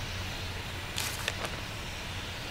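A sheet of paper rustles as it is unfolded.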